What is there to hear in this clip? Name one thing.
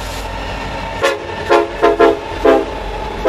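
A diesel locomotive sounds its air horn in short blasts.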